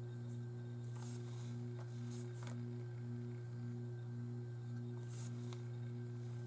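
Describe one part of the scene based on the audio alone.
A paintbrush swishes and taps in a paint pan.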